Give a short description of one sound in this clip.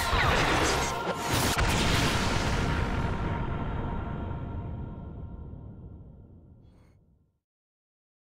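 A huge explosion booms and slowly rumbles away.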